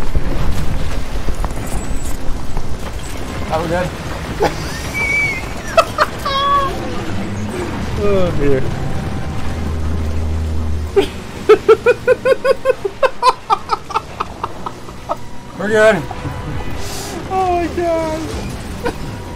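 Two young men talk and laugh excitedly close to a microphone.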